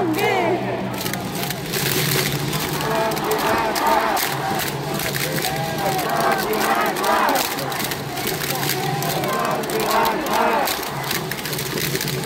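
A large crowd chants and sings together loudly in an open stadium.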